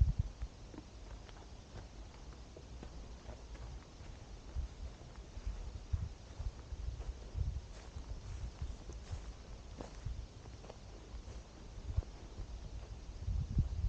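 Wind gusts across an open hilltop, buffeting the microphone.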